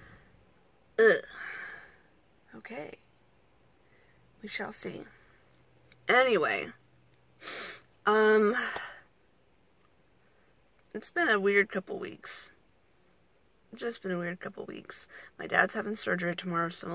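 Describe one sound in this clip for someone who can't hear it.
A young woman talks close up, in short bursts with pauses.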